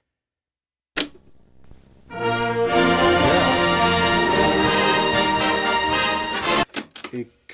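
Buttons on a tape recorder click.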